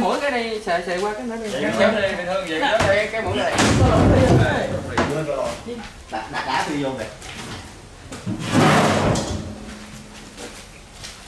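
Hands rub and knock on a boat's hull.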